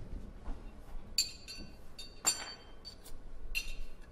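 Glass bottles clink against a table.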